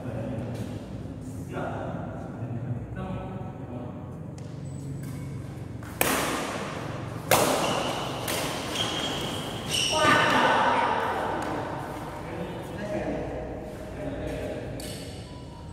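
Badminton rackets strike a shuttlecock with sharp smacks in a large echoing hall.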